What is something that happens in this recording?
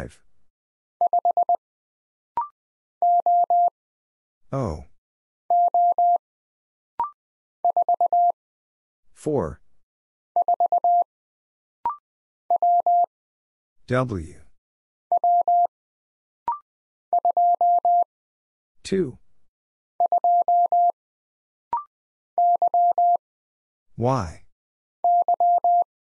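A telegraph key taps out short and long steady beeps in quick bursts.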